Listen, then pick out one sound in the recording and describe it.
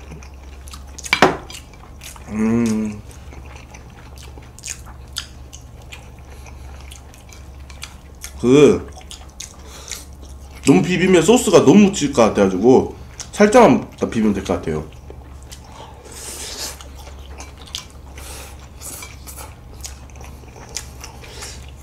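Young men chew and slurp noodles close to a microphone.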